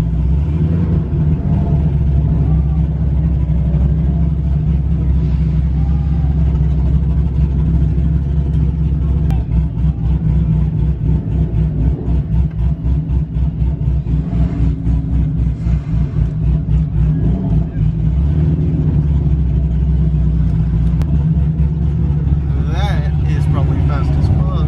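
A crowd of young men chatters faintly outside.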